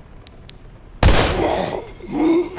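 A pistol fires a loud shot that echoes.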